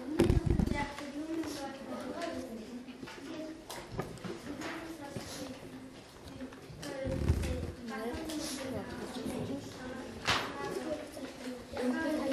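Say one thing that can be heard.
A young boy speaks up clearly.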